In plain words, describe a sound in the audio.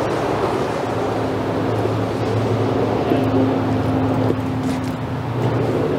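Footsteps scuff on paving close by.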